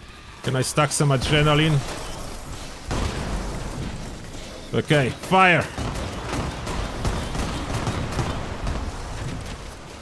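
Gunfire and explosions boom from a game.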